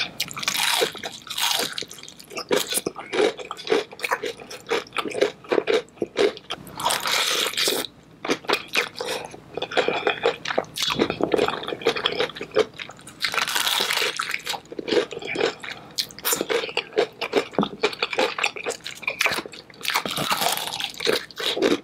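Crispy chicken skin crackles as it is torn apart by hand.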